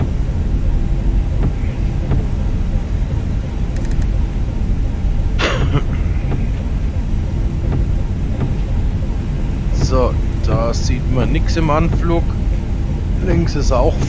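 Jet engines rumble low and steadily.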